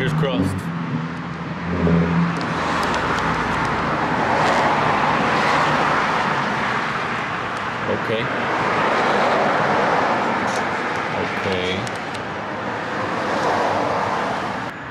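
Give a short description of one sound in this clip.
A hand rubs a sticker down onto a smooth surface with a soft, rhythmic swishing.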